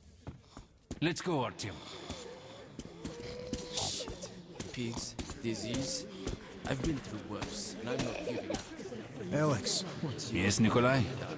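A man speaks nearby in a calm voice.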